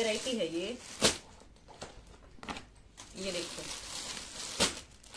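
A plastic packet crinkles and rustles.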